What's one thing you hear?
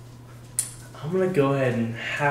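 A teenage boy talks and laughs close by.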